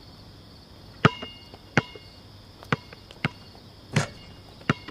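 A basketball bounces on a hard outdoor court with loud, ringing thuds.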